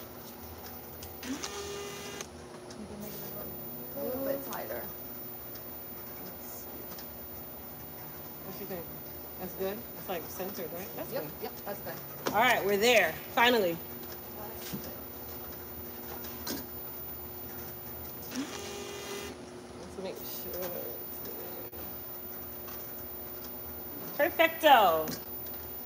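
A labeling machine hums steadily.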